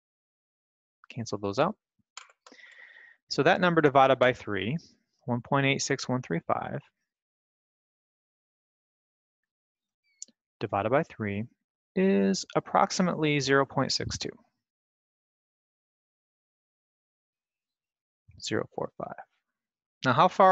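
A young man talks calmly into a headset microphone, in short bursts with pauses.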